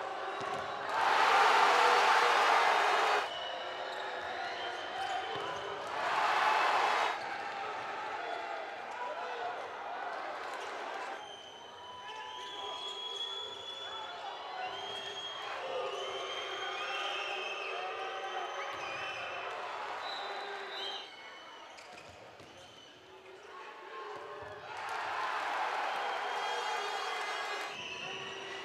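A crowd cheers and roars in a large echoing hall.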